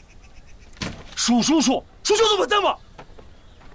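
An older man shouts angrily close by.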